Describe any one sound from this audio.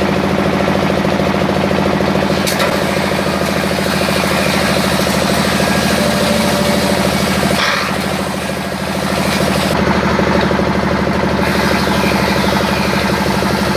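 A wooden stick grinds and scrapes against a spinning cutter.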